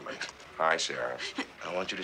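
A middle-aged man speaks with a light, amused tone.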